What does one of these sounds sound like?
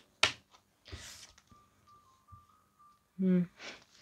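A playing card is laid down on a table with a soft slap.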